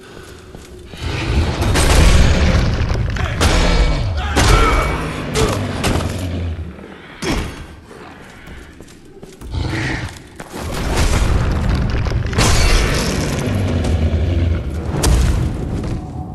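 Heavy weapon blows clash and thud in combat.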